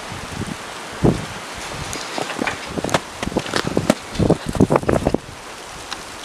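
Split firewood logs knock and clatter together.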